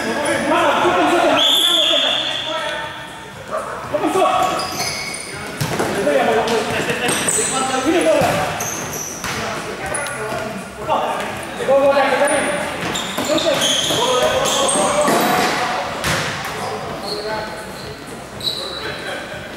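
Sneakers squeak sharply on the hard court.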